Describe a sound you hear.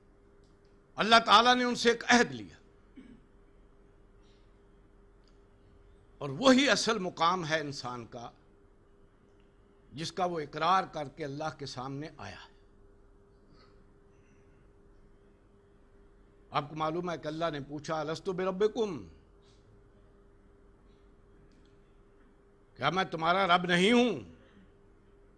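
An elderly man reads aloud slowly into a close microphone, with long pauses between phrases.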